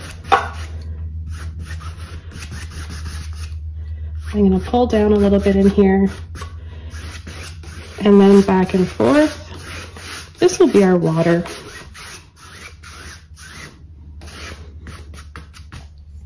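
A stiff brush scrubs and swishes across canvas.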